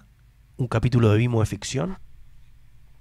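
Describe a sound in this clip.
A middle-aged man speaks with animation, close into a microphone.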